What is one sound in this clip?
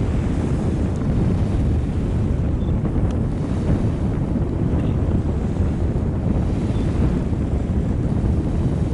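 A large ship's engines rumble low and steadily across the water.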